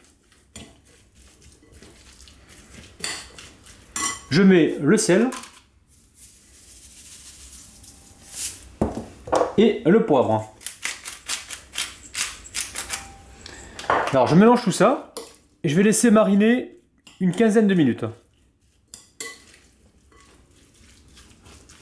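A spoon stirs and scrapes against a glass bowl.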